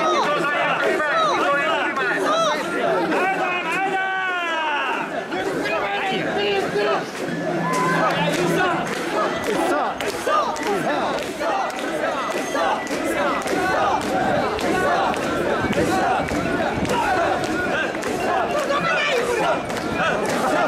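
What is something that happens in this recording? A crowd of men chant loudly in rhythm, close by.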